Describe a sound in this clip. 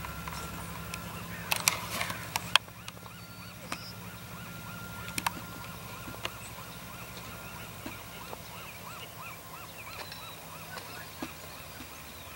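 A diesel locomotive hauls a passenger train past, rumbling far off.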